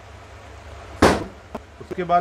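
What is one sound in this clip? A plastic set square is set down on a table with a knock.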